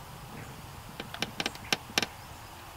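A fishing reel clicks in quick bursts.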